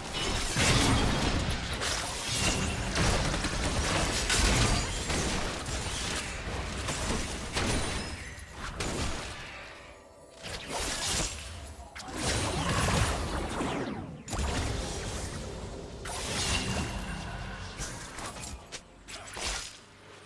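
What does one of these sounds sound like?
Video game spell effects burst and crackle during combat.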